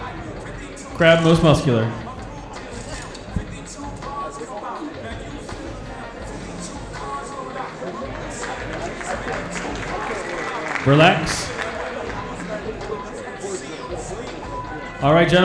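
Audience members shout and cheer loudly in a large hall.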